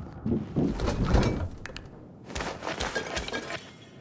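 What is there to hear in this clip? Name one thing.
A refrigerator door swings open with a click.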